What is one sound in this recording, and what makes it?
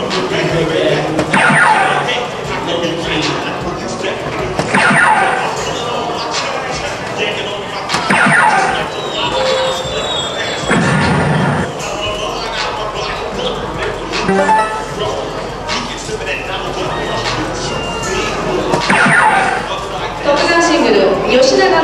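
Darts thud into a dartboard.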